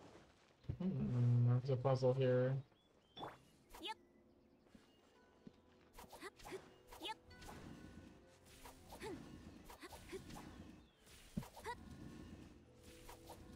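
Sword slashes swish and clang in quick bursts.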